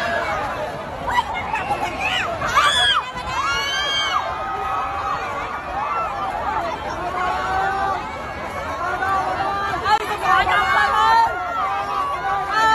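A crowd of young women screams and shouts excitedly close by.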